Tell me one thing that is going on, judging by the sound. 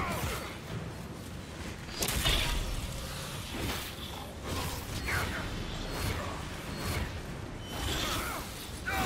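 Weapons clash with sharp metallic hits.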